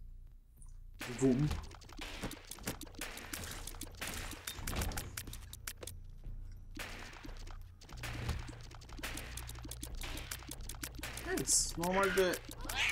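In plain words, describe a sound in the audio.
Small wet shots pop and splat in quick bursts.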